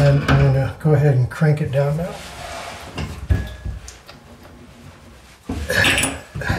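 A metal wrench clicks and scrapes against a pipe fitting.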